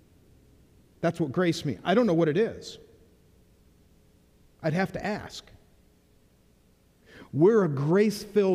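A middle-aged man speaks with animation into a microphone in a large, echoing room.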